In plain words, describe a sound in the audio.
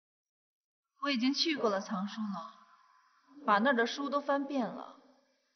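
A young woman speaks quietly and intently, close by.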